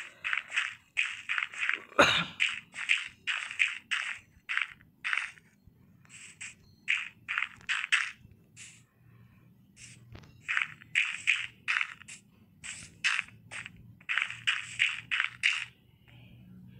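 Dirt blocks crunch in quick bursts as they are placed and broken.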